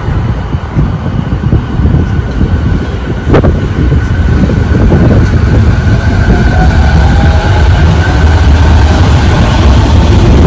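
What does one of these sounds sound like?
A commuter train rumbles and clatters as it pulls out, growing louder as it gathers speed.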